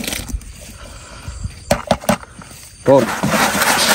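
Corn kernels tip out of a can into a bucket.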